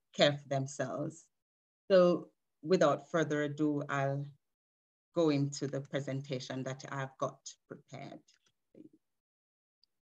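A woman speaks warmly over an online call.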